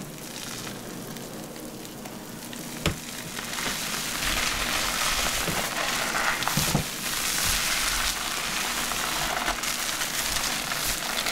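Hands rub and massage wet hair with soft squishing sounds.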